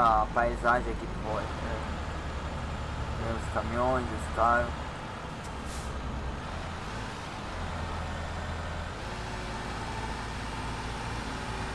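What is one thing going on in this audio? Trucks rush past in the opposite direction.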